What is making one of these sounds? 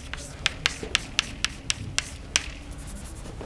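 Chalk taps and clicks against a blackboard.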